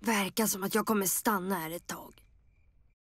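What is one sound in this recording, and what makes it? A young girl speaks with a sigh, close by.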